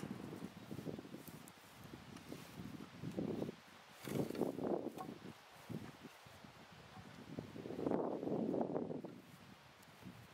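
Wooden boards knock and clatter as they are lifted and dropped.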